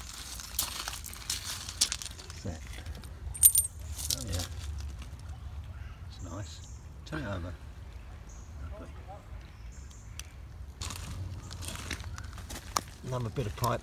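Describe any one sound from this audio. Pebbles clink and crunch as a hand sifts through them.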